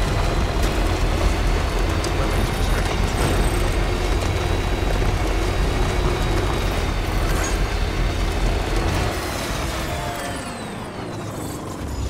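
A truck engine hums steadily as it drives over rough ground, then winds down.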